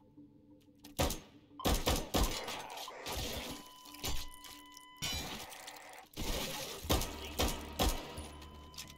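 A pistol fires several loud shots in quick bursts.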